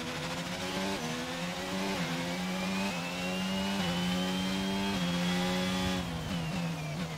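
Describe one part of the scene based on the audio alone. A racing car engine roars and rises in pitch through quick gear shifts.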